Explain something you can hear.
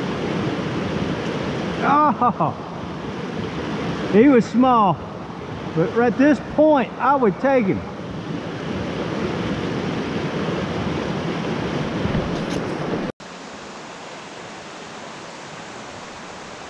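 A stream trickles and gurgles steadily outdoors.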